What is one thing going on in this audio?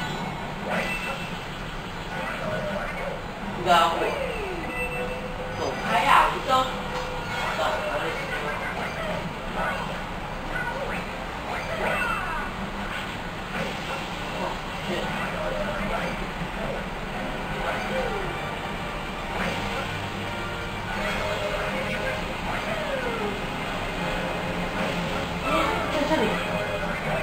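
Video game music and sound effects play from a television speaker.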